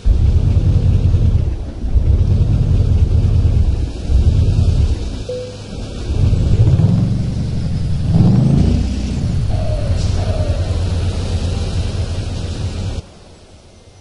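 A heavy truck engine rumbles and revs up close.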